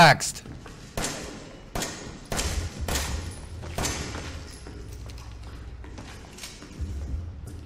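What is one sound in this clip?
Pistol shots ring out sharply, one after another.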